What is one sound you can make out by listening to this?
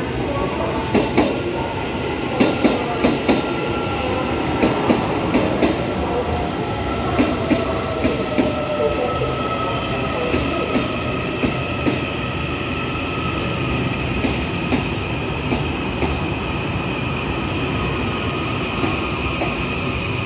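Train wheels clack rhythmically over rail joints.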